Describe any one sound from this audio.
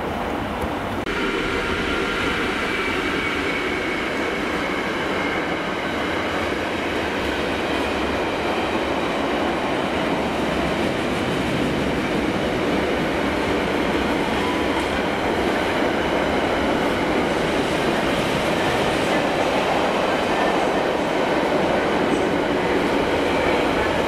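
Freight wagons clatter and squeal over the rails.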